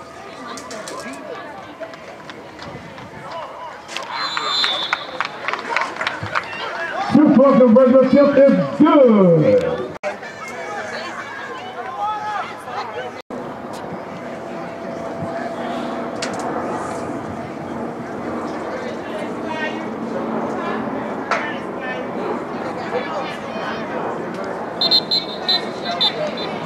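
Spectators chatter and cheer outdoors.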